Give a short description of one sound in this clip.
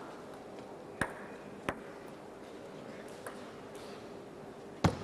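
A table tennis ball bounces on a table.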